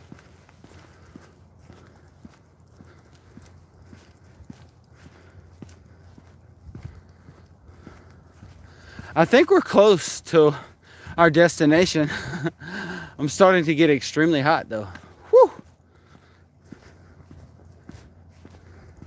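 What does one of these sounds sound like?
Footsteps tap steadily on a pavement.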